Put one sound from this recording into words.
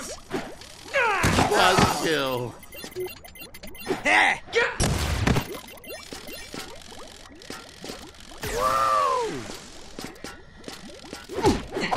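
Electronic blasts and whooshes burst out in quick succession.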